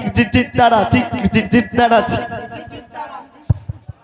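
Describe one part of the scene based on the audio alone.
Hand drums are beaten in a fast rhythm.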